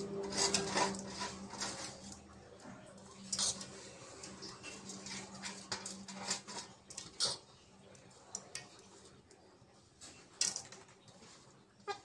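A metal strainer knocks and scrapes lightly against a metal bowl.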